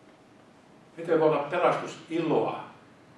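An elderly man speaks into a microphone, heard through a loudspeaker in an echoing room.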